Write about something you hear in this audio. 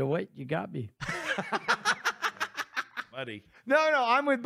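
A man laughs loudly into a microphone.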